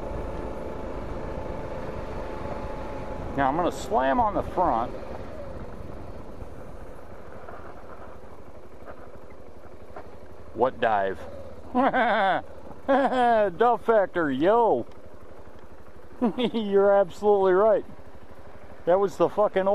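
A motorcycle engine hums steadily at low speed.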